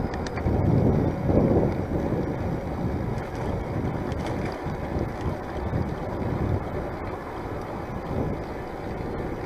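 Wind rushes steadily past a bicycle rider outdoors.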